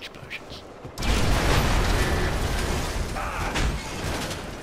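A large metal structure crashes down with a long, loud rumble.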